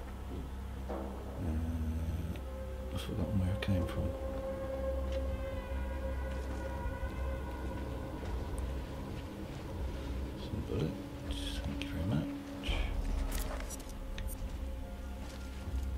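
Footsteps thud on wooden boards and crunch over snow.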